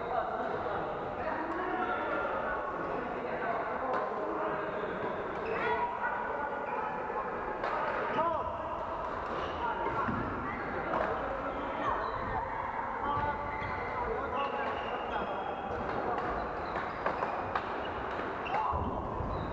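Many voices chatter and call out across a large echoing hall.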